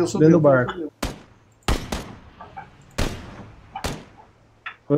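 A rifle fires single loud shots that echo briefly.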